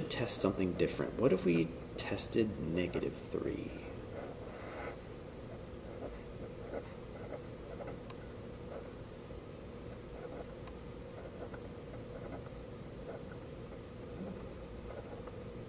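A pen scratches and taps on paper.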